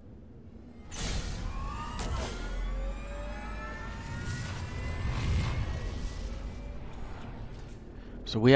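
A spacecraft engine roars and whines as the craft lifts off.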